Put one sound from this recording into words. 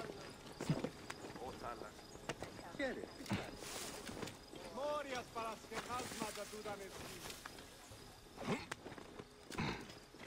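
Hands scrabble and grip while climbing a stone wall.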